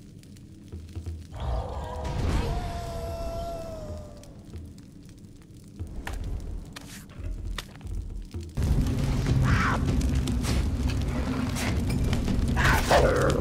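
Soft menu clicks tick as options are picked.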